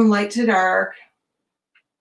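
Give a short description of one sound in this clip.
A woman speaks briefly through a microphone over an online call.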